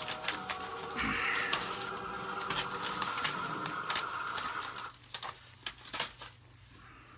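A man rummages and handles small objects close by, with soft knocks and clicks.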